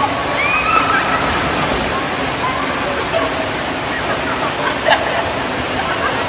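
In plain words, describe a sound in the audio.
Water churns and sloshes steadily in a pool.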